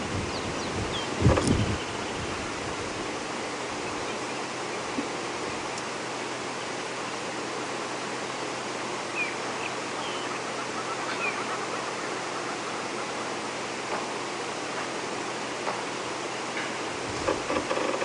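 Antelopes tear and chew at wet plants.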